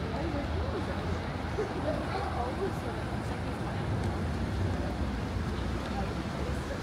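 A low, steady rumble of city traffic fills the street outdoors.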